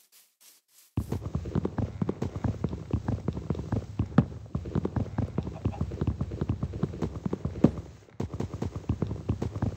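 Dull wooden knocks repeat quickly as a block of wood is punched.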